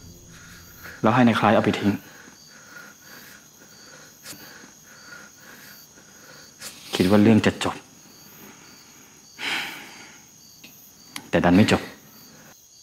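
A man speaks in short, tense bursts close by.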